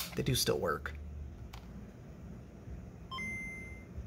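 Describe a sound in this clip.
A small plastic switch clicks.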